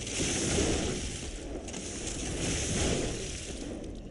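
Fire crackles and bursts.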